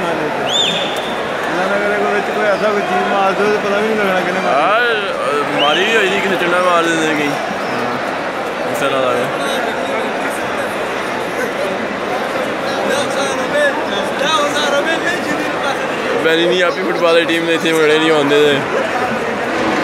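Crowd members chant and sing loudly together.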